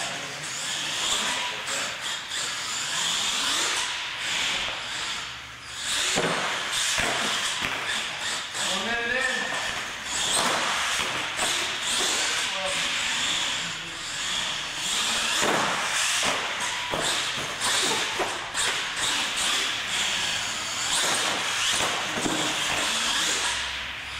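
A toy car's electric motor whines loudly, rising and falling as it speeds around.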